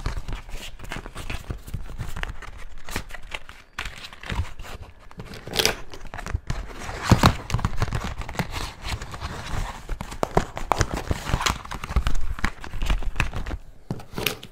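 Stiff clear plastic packaging crinkles and crackles in hands.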